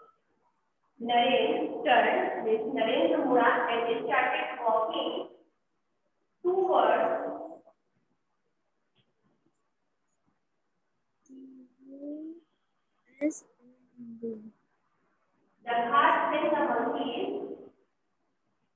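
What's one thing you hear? A woman speaks clearly and steadily.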